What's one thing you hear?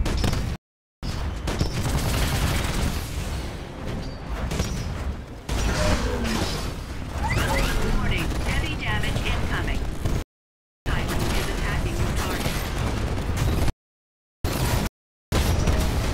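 Heavy guns fire in rapid, loud bursts.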